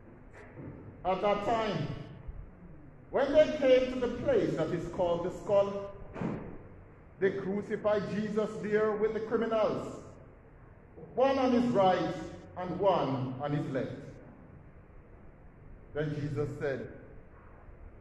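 A man chants a prayer aloud in an echoing hall.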